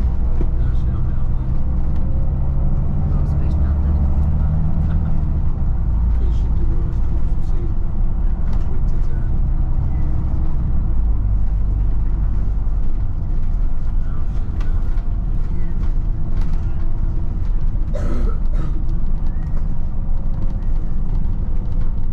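Tyres roll over a road surface.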